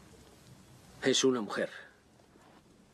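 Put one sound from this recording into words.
A man speaks briefly and tensely, close.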